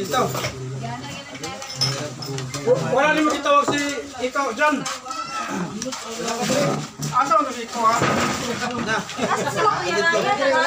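Several men talk and laugh close by, lively and overlapping.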